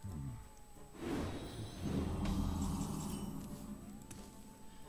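Magical shimmering whooshes burst out as a spell goes off.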